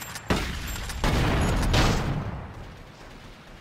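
A car explodes with a loud roaring blast.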